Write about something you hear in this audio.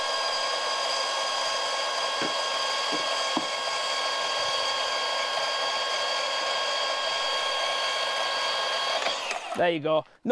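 A band saw cuts through a wooden beam with a steady whine.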